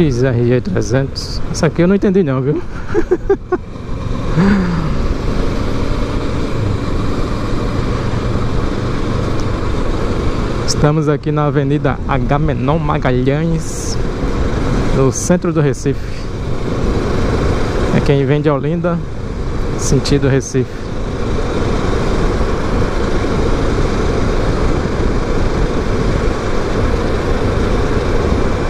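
Wind rushes past the microphone.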